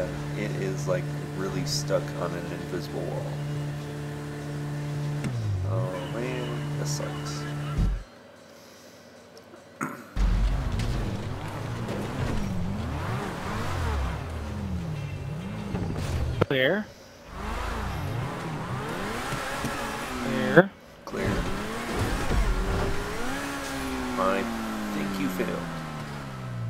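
A race car's engine roars and revs up and down.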